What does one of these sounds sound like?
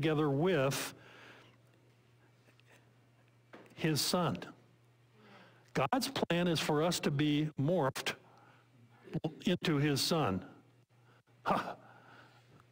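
A middle-aged man speaks with animation into a microphone, with pauses.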